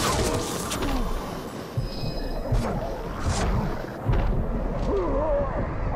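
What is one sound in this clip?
A sword slashes and strikes flesh.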